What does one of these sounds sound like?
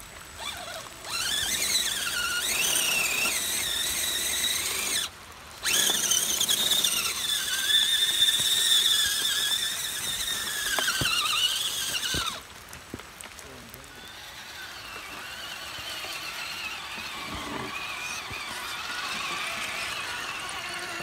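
A small electric motor whines, its pitch rising and falling.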